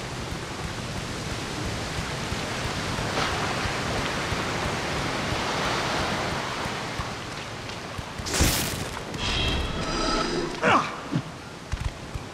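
Heavy footsteps run quickly across stone.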